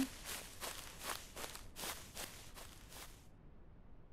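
Footsteps crunch through grass at a steady pace.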